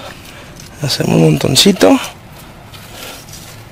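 Soft soil scrapes and crumbles under a hand.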